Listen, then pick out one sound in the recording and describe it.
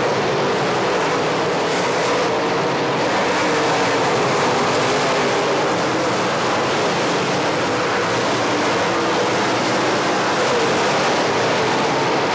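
Several race car engines roar loudly and steadily.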